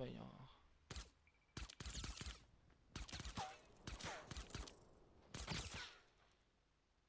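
Gunshots crack in short, quick bursts.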